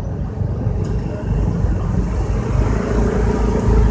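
Motorbike engines buzz nearby.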